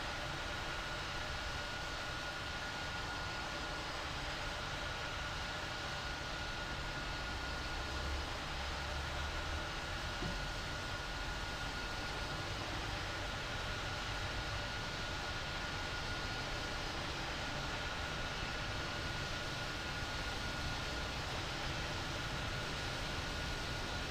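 A jet airliner roars in the distance as it lands and rolls along a runway.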